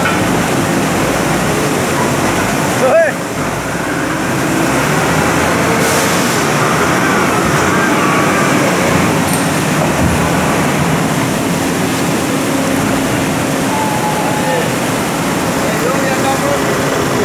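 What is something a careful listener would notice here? A forklift engine rumbles steadily.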